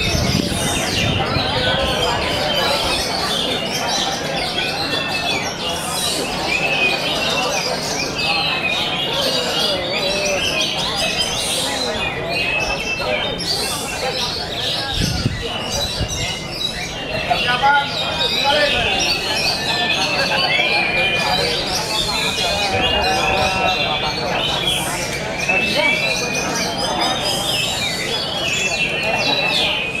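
A bird sings loud, varied whistling songs close by.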